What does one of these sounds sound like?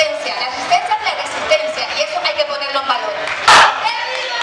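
A woman speaks with animation through a microphone, heard over loudspeakers.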